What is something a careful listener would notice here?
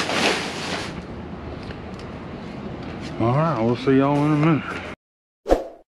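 A metal bin lid bangs and clatters.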